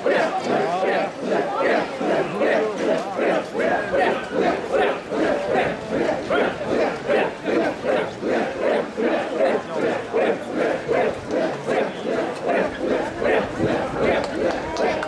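A large crowd of men chants loudly in a steady, rhythmic call.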